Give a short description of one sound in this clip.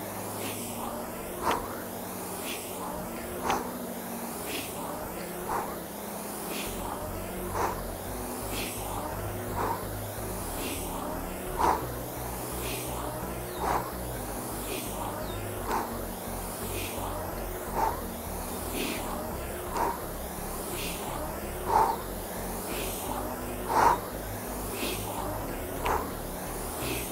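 A rowing machine's flywheel whooshes with each steady stroke, about every two seconds.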